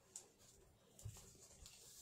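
Scissors snip through craft foam.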